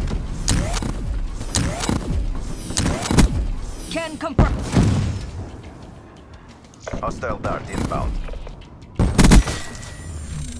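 Gunfire from a video game rattles in sharp bursts.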